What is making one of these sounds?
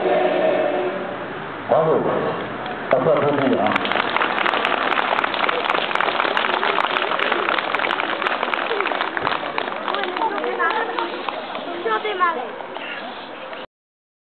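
A large crowd of children chatters and calls out outdoors.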